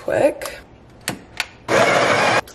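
A coffee machine's handle clicks into place.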